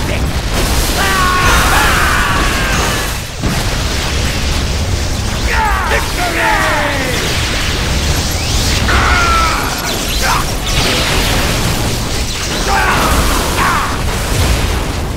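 Laser blasts zap in quick bursts.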